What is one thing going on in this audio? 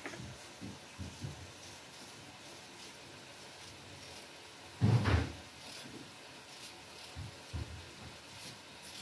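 A knife scrapes softly as it peels a potato.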